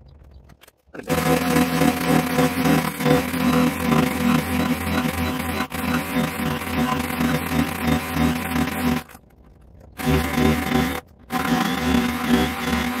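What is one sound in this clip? A power planer whines loudly as it shaves wood, stopping briefly and starting again.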